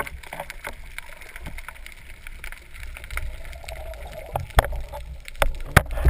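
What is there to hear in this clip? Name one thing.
Air bubbles gurgle and rise close by underwater.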